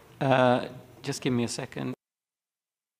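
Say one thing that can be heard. A man speaks calmly into a microphone, then falls silent.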